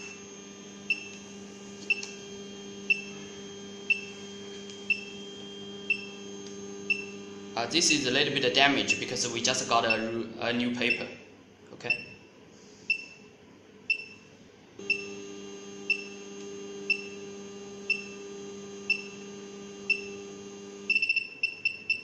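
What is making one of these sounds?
A small machine beeps at a steady pace, about once a second.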